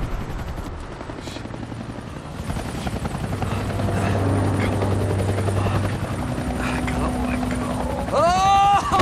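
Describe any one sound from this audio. A helicopter engine drones with whirring rotor blades.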